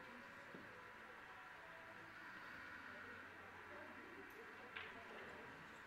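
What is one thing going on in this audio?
Pool balls click against each other on a table.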